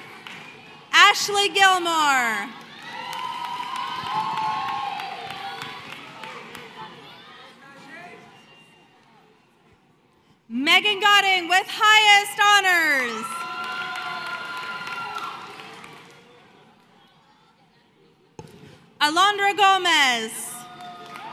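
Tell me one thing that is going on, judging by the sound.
A crowd in a large echoing hall cheers and whoops loudly.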